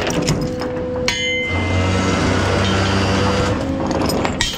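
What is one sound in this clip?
A heavy chain clanks against a metal deck.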